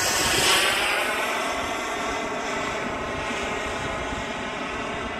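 A jet engine roars overhead and slowly fades into the distance.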